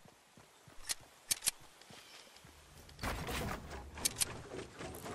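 Building pieces snap into place with sharp clicks.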